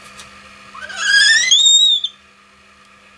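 A young girl gasps loudly for breath.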